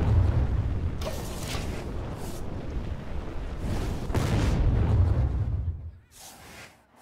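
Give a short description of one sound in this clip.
Magical game effects whoosh and rumble loudly, then fade away.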